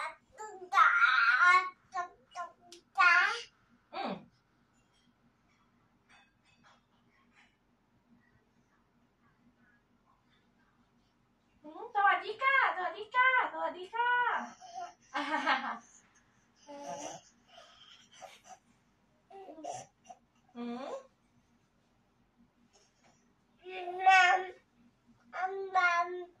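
A woman talks playfully to a baby close by.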